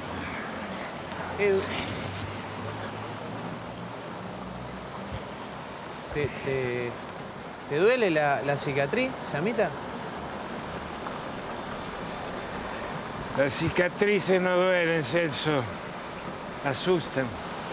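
Water sprays and splashes steadily onto a man.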